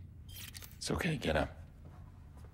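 A young man speaks briefly and calmly into a microphone.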